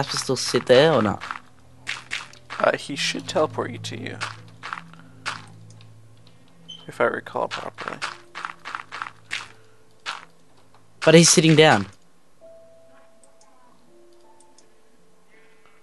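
Dirt blocks crunch with short, quick thuds as they are dug away.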